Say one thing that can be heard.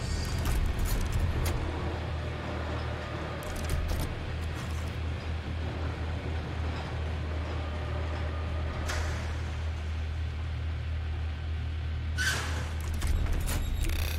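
A heavy cage lift rumbles steadily as it descends.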